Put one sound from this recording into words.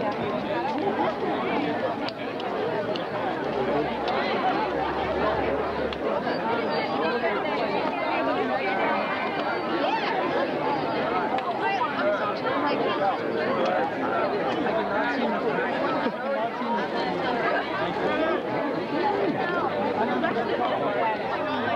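A crowd of men and women chatter all around, close by and outdoors.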